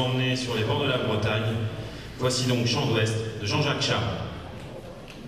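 A big band plays a brassy swing tune in a large hall, then stops.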